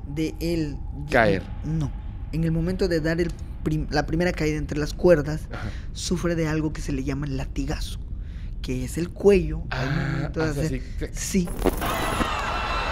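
A second man talks with animation close to a microphone.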